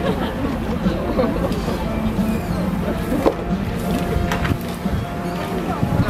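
A rake scrapes over grass.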